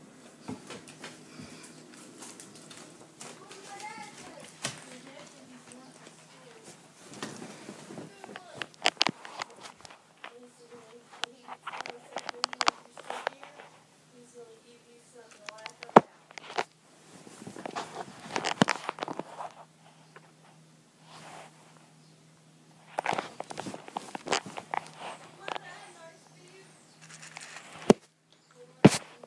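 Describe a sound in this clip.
A young boy talks close to the microphone.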